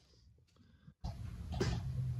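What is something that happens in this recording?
A fan's switch clicks.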